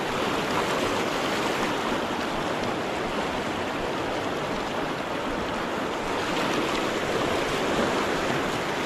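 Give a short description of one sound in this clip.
A fast river rushes and splashes loudly over rocks close by.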